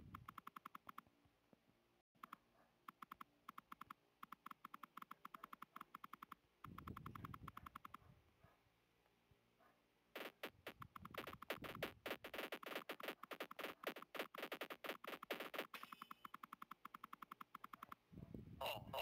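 Rapid game shots fire in quick clicking bursts.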